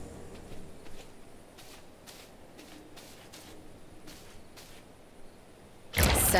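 Footsteps tread softly along a dirt path.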